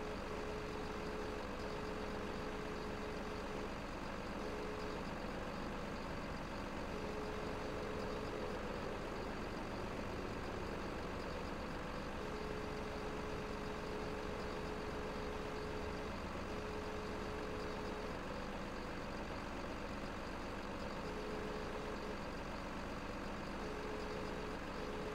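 A hydraulic crane arm whines in short bursts.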